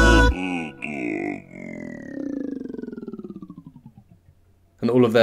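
Men sing in harmony with a long held note that slowly fades.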